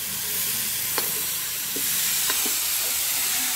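A metal pot clinks against a metal pan.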